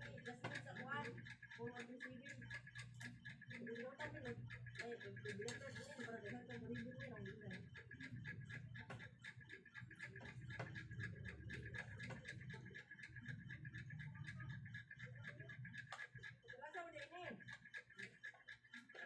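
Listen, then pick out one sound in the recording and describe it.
Fingers scrape food on a plate.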